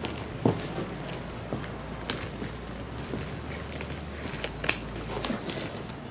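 Scissors cut through cardboard.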